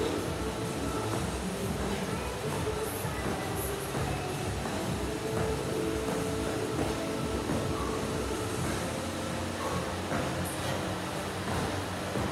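Feet thud on a mat as a man jumps.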